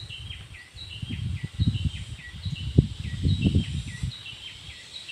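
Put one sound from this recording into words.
Wind buffets outdoors in short gusts.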